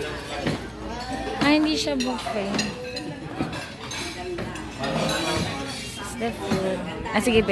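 Several people chat and talk at once in a room.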